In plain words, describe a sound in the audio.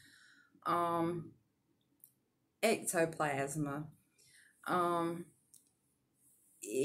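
A middle-aged woman speaks calmly and close up, heard through a microphone.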